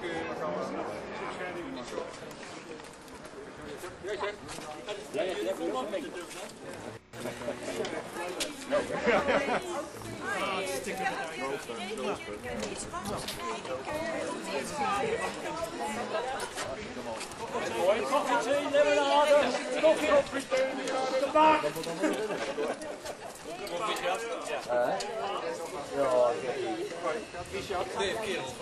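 Several men and women chatter nearby outdoors.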